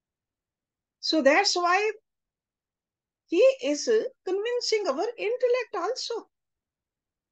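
An elderly woman speaks calmly through an online call.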